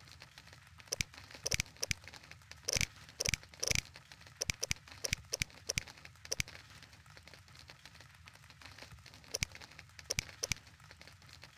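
Short interface clicks sound as menu items are scrolled.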